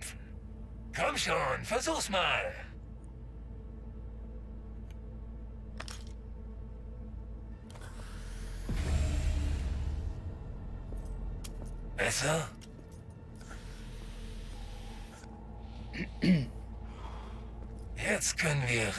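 A man speaks in a gravelly voice, close by.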